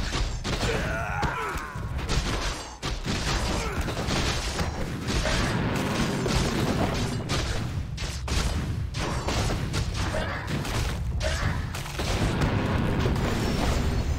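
Fantasy battle sound effects clash and crackle.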